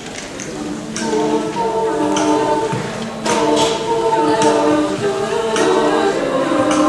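A group of young women sing together in harmony.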